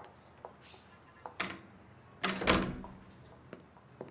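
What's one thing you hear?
A door shuts with a thud.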